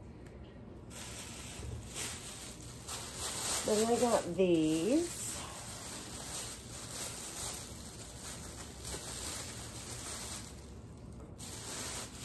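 Paper rustles as something is unwrapped.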